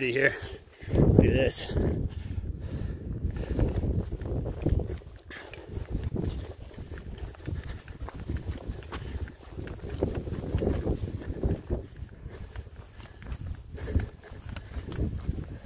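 Footsteps crunch on a gravel trail.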